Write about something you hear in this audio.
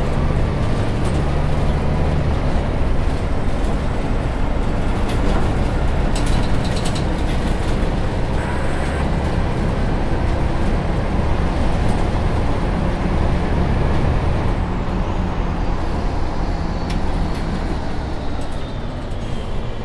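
A diesel city bus engine drones while cruising.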